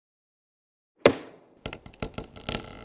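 An axe thuds into a wooden stump.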